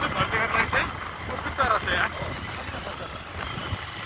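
A motorcycle approaches and passes by.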